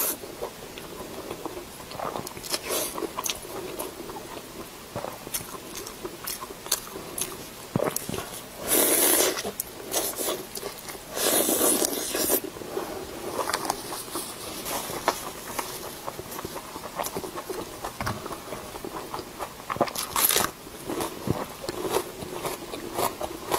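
Wet sticky food squelches and tears in gloved hands.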